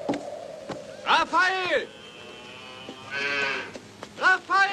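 Cattle moo in the distance.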